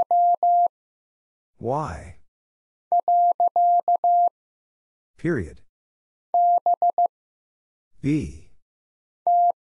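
Morse code beeps in short and long steady tones.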